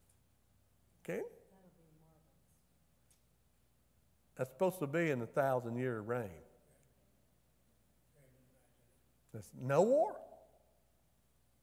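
A middle-aged man speaks with animation through a microphone in an echoing room, with pauses.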